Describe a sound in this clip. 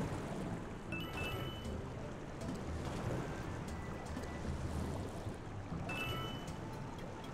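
A short bright video game chime rings.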